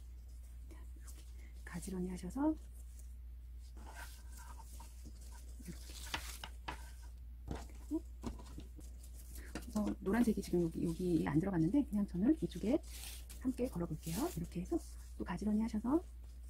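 Fabric ribbons rustle softly as hands handle them.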